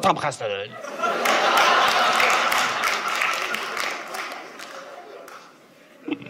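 An audience applauds and laughs.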